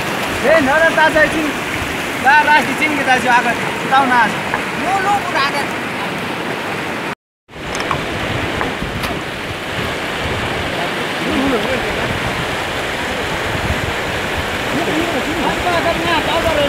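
A shallow stream trickles and gurgles over stones.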